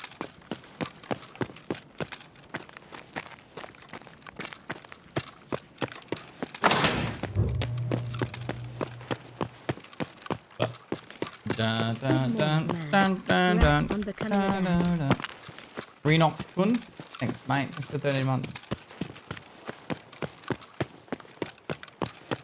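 Footsteps crunch steadily on gravel and concrete.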